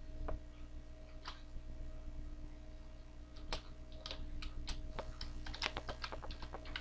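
Keys clack on a keyboard in short, uneven bursts.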